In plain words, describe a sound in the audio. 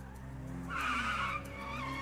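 A car engine hums as a car slowly approaches.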